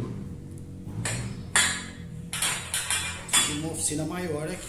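Metal parts clank and rattle sharply.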